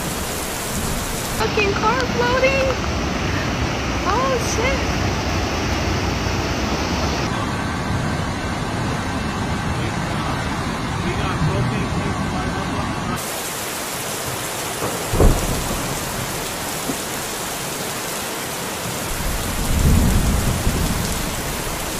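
Floodwater rushes and roars strongly.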